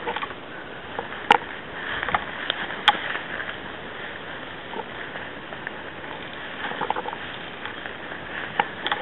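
Twigs and branches brush and crack close by.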